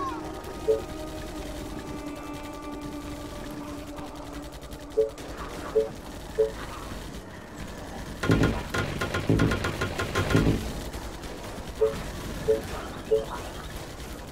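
Short interface clicks chime several times.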